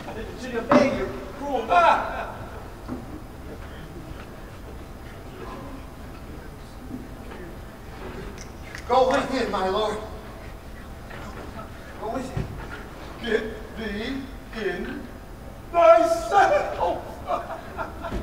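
Another man speaks in a raised voice.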